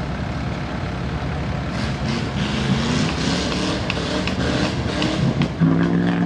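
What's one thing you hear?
A big pickup engine rumbles and revs up close.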